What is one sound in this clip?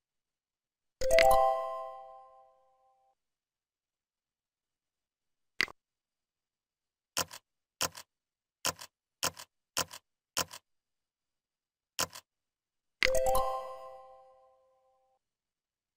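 A bright chime rings out and fades as an answer is accepted.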